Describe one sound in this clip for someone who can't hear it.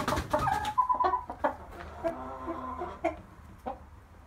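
A rooster crows nearby.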